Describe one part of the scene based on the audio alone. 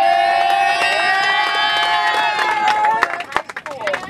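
A crowd of passengers sings together loudly, holding long notes.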